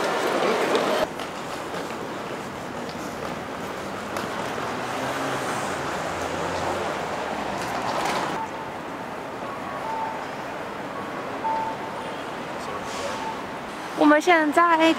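Traffic hums faintly outdoors.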